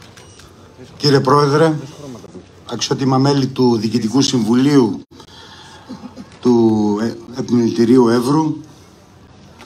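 A man speaks formally into a microphone, heard through loudspeakers outdoors.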